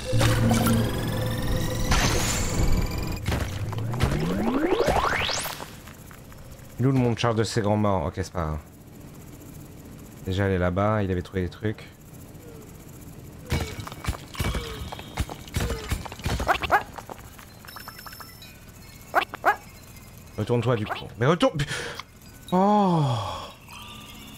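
Electronic game sound effects sweep, warble and chirp in short bursts.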